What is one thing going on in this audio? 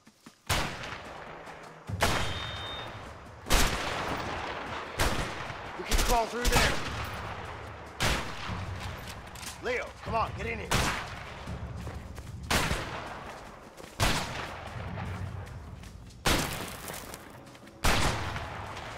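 Loud gunshots boom one after another, each followed by a ringing echo.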